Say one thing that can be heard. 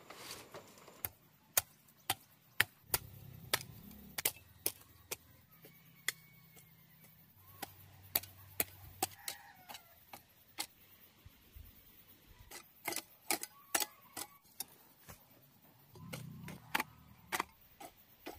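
A hoe chops into dry soil with repeated thuds.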